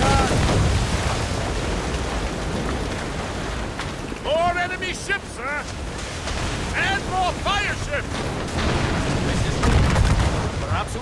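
Cannons boom in deep, heavy blasts.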